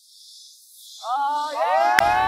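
An older man speaks with animation.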